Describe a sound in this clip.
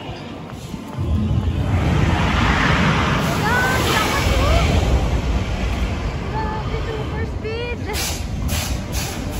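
A roller coaster roars and rumbles in the distance outdoors.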